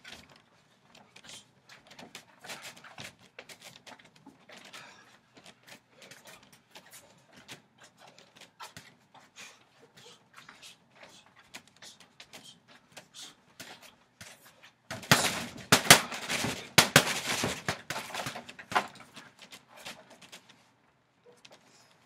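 Gloved fists thud against a heavy punching bag.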